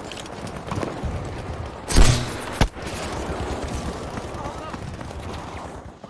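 Explosions rumble in the distance.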